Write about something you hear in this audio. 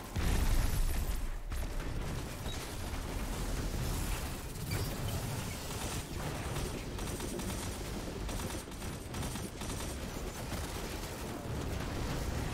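Rapid gunfire blasts again and again.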